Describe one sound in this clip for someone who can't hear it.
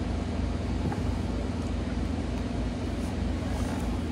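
Hands squish and knead raw ground meat.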